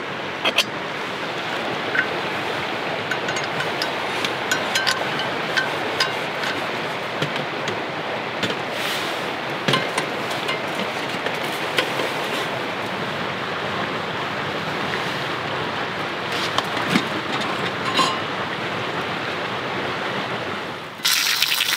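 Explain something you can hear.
A wood fire crackles and pops in a small stove.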